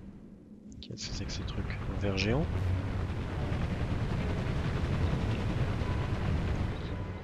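A deep rumbling rises from the ground and goes on steadily.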